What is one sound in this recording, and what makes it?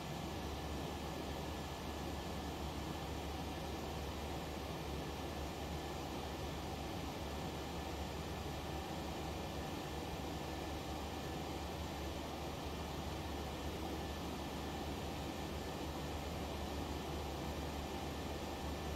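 A jet airliner's engines drone steadily in cruise flight.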